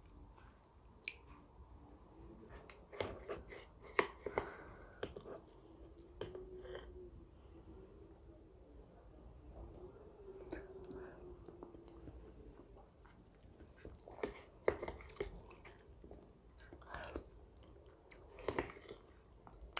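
A spoon clinks and scrapes against a glass bowl up close.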